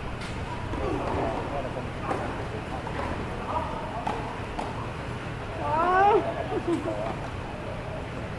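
Young men call out to each other across a court.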